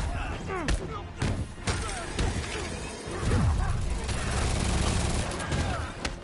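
Blows and impacts thud sharply.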